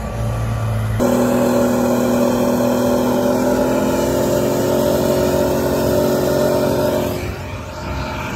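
A heavy vehicle engine roars loudly up close while riding.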